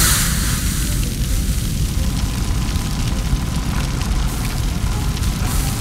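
A large fire roars and crackles.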